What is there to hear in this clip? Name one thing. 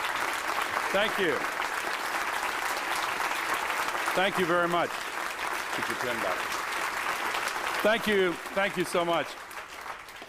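A man speaks through a microphone over applause.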